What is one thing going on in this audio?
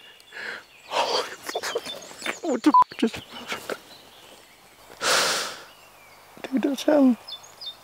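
A man blows a game call in short, wavering bursts.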